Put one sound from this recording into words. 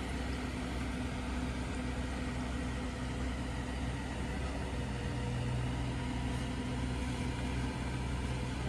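A truck engine rumbles steadily on a nearby road.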